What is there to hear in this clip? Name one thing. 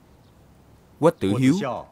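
A man reads out a name calmly, close by.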